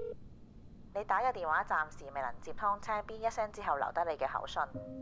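An elderly woman speaks into a phone with animation, close by.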